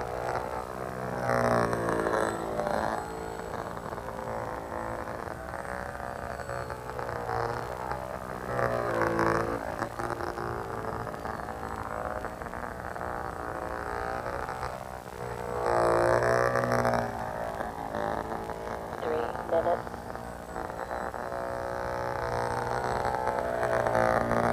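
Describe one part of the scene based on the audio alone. A small model plane engine buzzes overhead, its pitch rising and falling as it swoops past.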